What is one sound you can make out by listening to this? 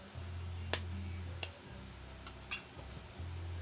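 A spoon taps against an eggshell, cracking it.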